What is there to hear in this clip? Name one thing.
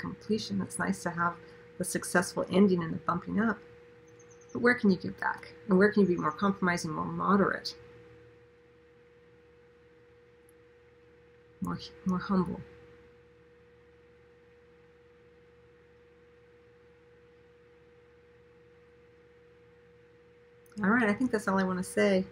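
A middle-aged woman speaks calmly and warmly, close to a microphone, with long pauses.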